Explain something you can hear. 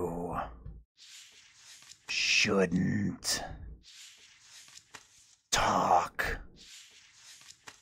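Paper pages rustle as they turn.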